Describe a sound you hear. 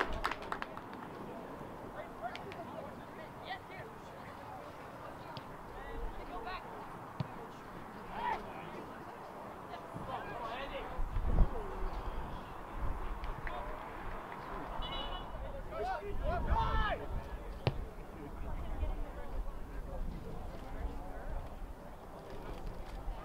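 Nearby spectators shout and cheer outdoors.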